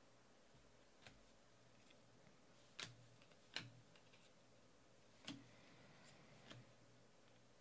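Trading cards softly flick and rustle as they are shuffled by hand.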